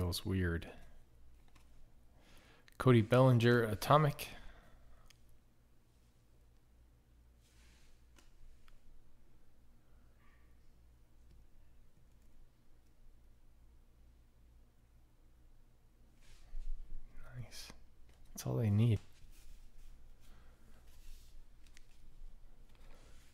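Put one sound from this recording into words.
Trading cards rustle and slide softly against each other in someone's hands.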